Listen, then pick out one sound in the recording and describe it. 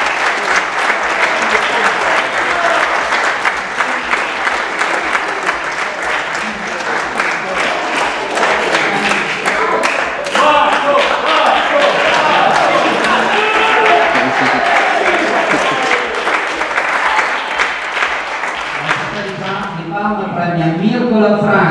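People in a crowd chatter and call out.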